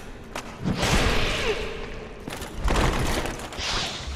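A sword whooshes and strikes with heavy impacts.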